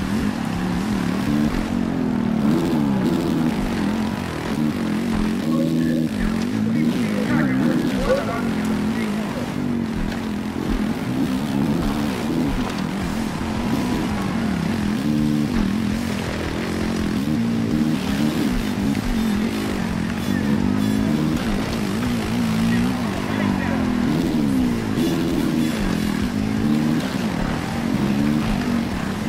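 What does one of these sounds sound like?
A motorcycle engine revs and whines up and down steadily throughout.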